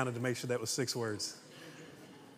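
A man speaks loudly and with animation through a microphone in a large echoing hall.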